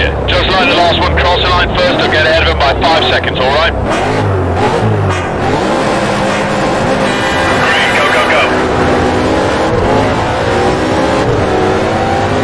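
A race car engine revs loudly and then roars as it speeds up through the gears.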